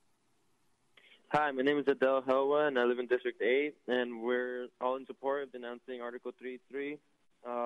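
A person speaks steadily through a microphone.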